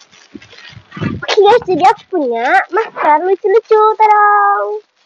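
A young girl speaks brightly and with animation close by.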